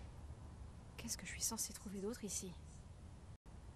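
A young woman speaks quietly and uneasily, close by.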